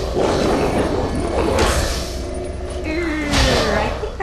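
A magic spell crackles and whooshes in bursts.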